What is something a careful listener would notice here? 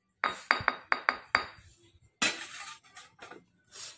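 A glass bottle clinks down onto a metal rail.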